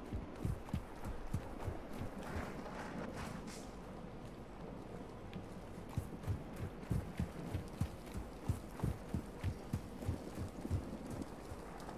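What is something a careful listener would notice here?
Footsteps thud quickly on soft sand.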